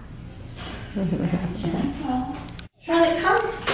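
A woman talks gently close by.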